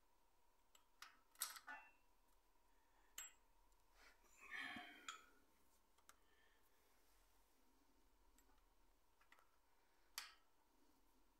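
A metal chain clinks and rattles against a sprocket.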